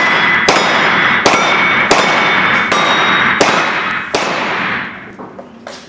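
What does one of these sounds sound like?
Steel targets ring when hit.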